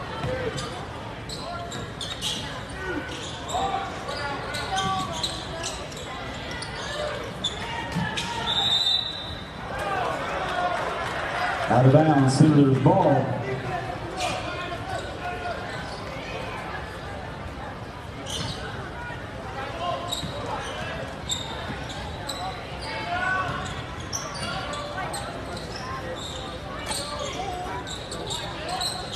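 Basketball shoes squeak sharply on a wooden court.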